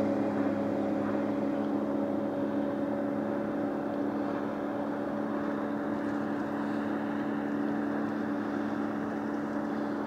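Water laps softly against the hull of a small boat moving along.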